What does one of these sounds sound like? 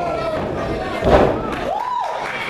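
A wrestler's body slams loudly onto the ring mat.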